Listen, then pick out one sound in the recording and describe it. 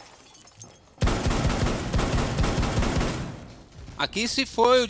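An automatic rifle fires a rapid burst of shots.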